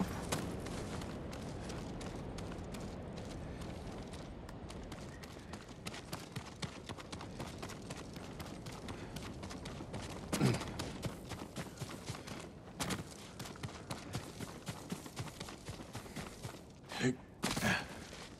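Footsteps crunch steadily over rock and grass.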